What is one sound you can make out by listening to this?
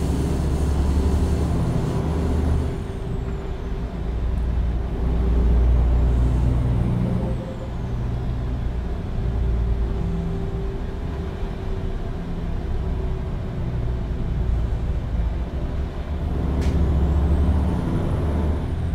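A truck engine rumbles steadily, rising and falling as it drives.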